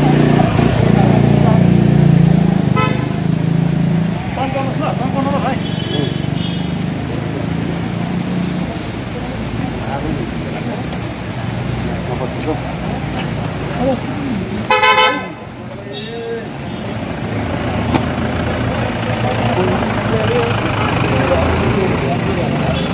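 A crowd of men chants slogans together outdoors.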